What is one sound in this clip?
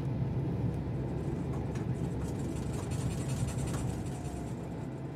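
A jet engine hums and rumbles steadily.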